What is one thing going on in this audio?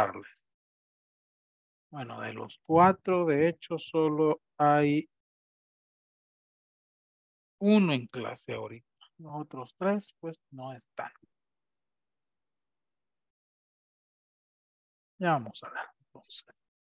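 A man speaks with animation over an online call, in bursts with pauses.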